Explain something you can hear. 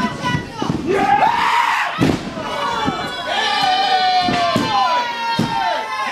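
Wrestlers' bodies thud onto a wrestling ring canvas.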